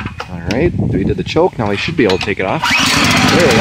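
A small petrol engine's starter cord is pulled several times with a whirring rattle.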